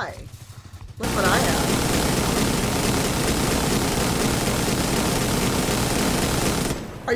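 A gun fires rapidly at close range.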